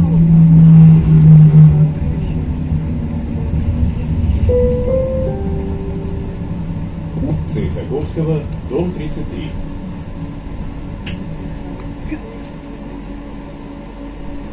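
A vehicle's motor hums and rumbles steadily from inside as it drives along.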